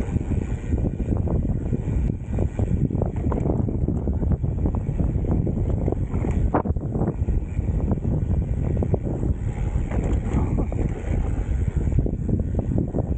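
Mountain bike tyres roll and crunch over a dirt trail.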